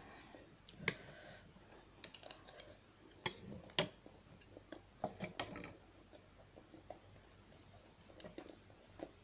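Metal utensils clink against a plate.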